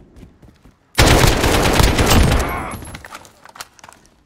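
Rapid gunfire bursts loudly from a rifle.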